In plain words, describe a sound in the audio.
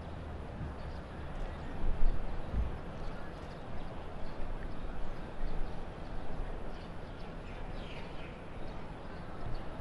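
A large outdoor crowd murmurs softly.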